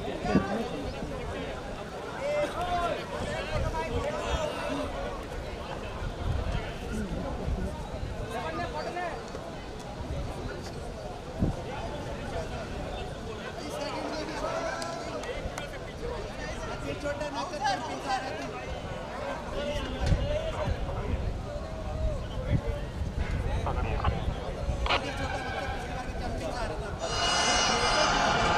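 Several men talk and call out to each other outdoors.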